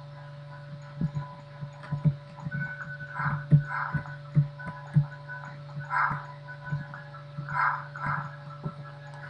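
Footsteps patter quickly on a hard stone floor.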